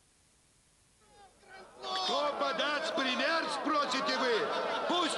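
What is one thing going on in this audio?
A crowd of men and women shout and cheer loudly.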